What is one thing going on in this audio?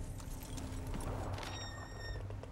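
Paper rustles as a letter is unfolded.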